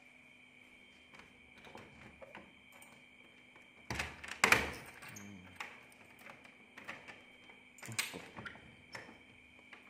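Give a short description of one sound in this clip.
A key jingles and clicks as it turns in a door lock.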